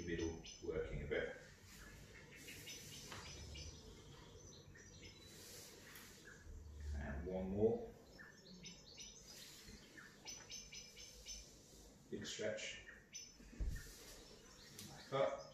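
Clothes rustle against a mat as a man shifts his legs.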